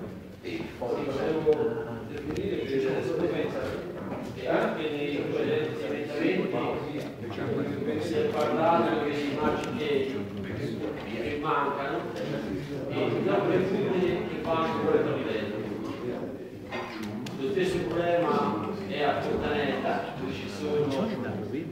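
A middle-aged man speaks steadily into a microphone in an echoing hall.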